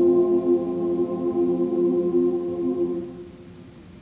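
A choir sings a sustained final chord in a large echoing hall.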